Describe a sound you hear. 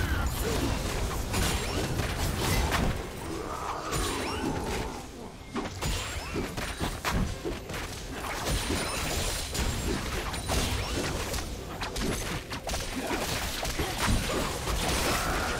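Game spell effects crackle and clash in a busy fight.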